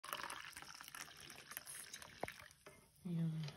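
Hot liquid pours and splashes into a mug.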